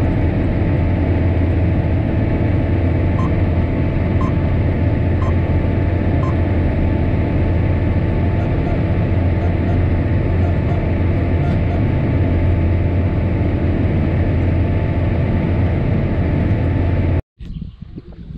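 A tractor engine drones loudly and steadily from inside the cab.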